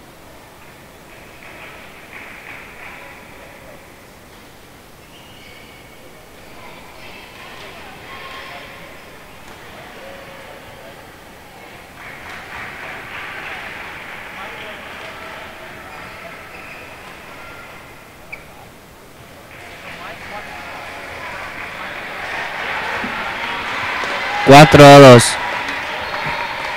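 A crowd of spectators chatters in a large echoing hall.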